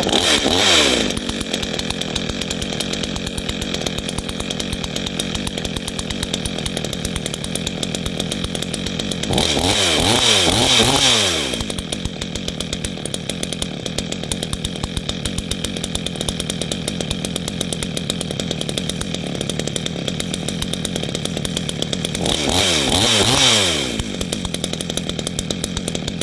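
A 62cc two-stroke chainsaw idles with a rattling burble.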